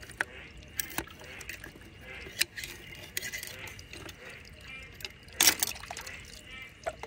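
A knife scrapes inside a shell.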